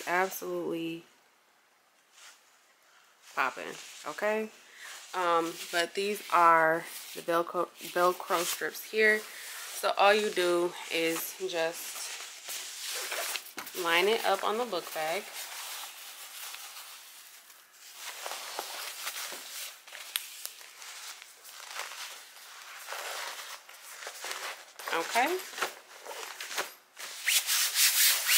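Fabric rustles and rubs as hands handle it.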